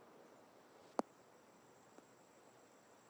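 A golf ball lands and bounces on grass.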